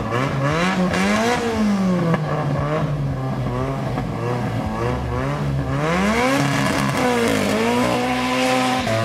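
Two car engines rev loudly, rising and falling in pitch.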